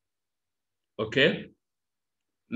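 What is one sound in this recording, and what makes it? A man speaks a few words briefly through a microphone.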